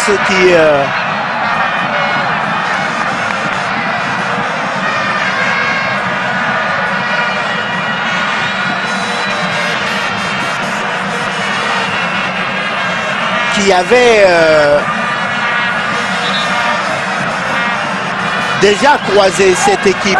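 A large stadium crowd cheers and sings in a steady roar.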